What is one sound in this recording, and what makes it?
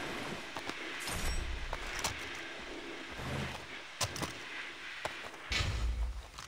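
Hands rummage through a body's clothing with soft rustling and thuds.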